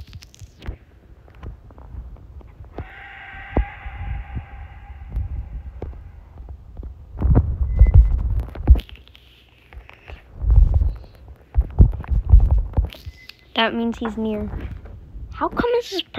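Fingers tap on a touchscreen keyboard with soft clicks.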